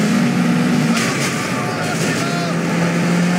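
Two cars crash together with a crunching bang.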